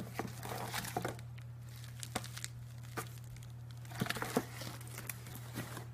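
Bubble wrap rustles and crinkles.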